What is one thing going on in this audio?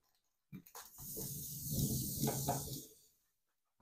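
Aluminium foil rustles and crinkles as it is unrolled.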